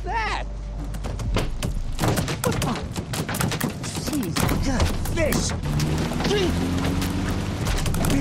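Fish thud and rattle hard against a car's roof and windshield.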